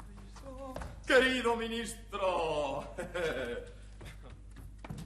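A young man speaks loudly and theatrically.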